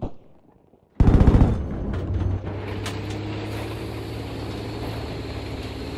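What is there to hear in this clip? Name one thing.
A tank engine rumbles and clanks steadily nearby.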